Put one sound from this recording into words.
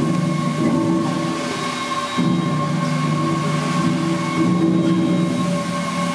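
Steam hisses from the engine.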